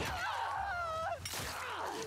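A blade stabs into flesh with a wet thud.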